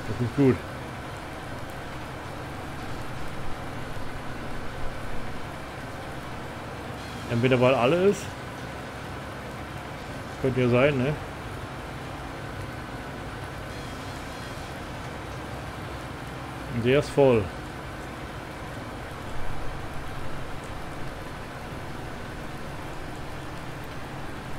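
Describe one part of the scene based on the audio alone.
A machine engine hums steadily.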